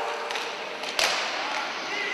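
A hockey stick strikes a puck with a sharp crack.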